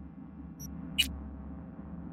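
A short electronic click sounds once.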